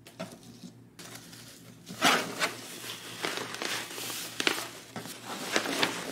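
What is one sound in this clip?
A lid scrapes and thumps as a box is opened.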